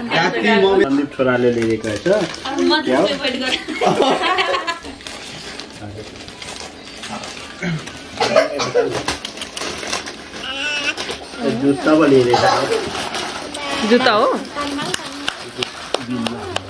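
Paper rustles as a gift is unwrapped.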